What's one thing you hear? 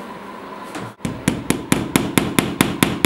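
A hammer taps quickly and repeatedly on a nail in a wall.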